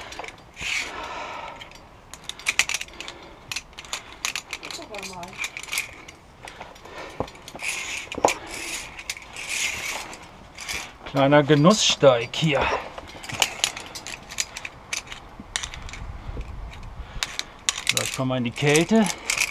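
A metal cable rattles and clinks against rock.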